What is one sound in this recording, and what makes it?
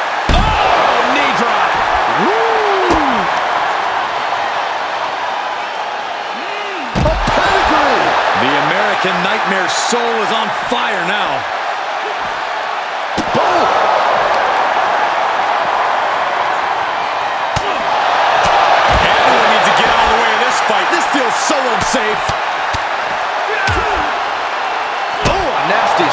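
Heavy blows and body slams thud sharply now and then.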